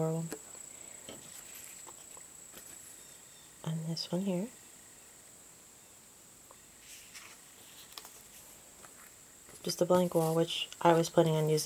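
Stiff paper cards rustle and slide against each other.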